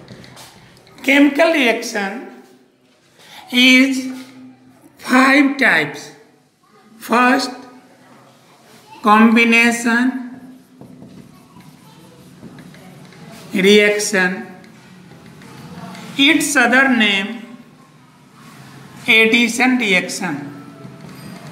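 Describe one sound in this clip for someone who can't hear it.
An elderly man speaks calmly and clearly, close by, in short phrases with pauses.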